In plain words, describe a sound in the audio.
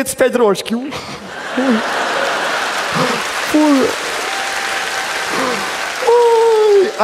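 An audience laughs in a large hall.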